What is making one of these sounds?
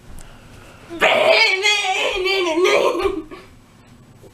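A boy laughs.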